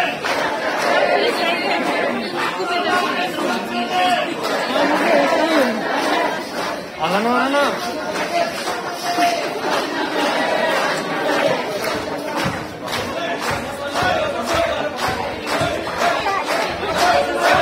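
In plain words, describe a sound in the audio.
A large crowd of men and women talks and shouts all at once, close by.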